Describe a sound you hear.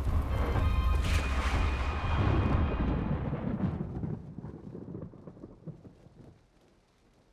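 Heavy rain beats against a window and slowly fades away.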